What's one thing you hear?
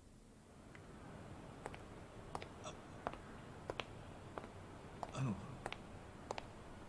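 Footsteps clack steadily on a hard floor.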